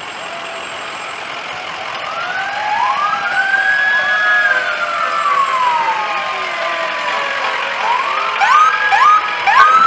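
A siren wails nearby and then yelps in quick bursts.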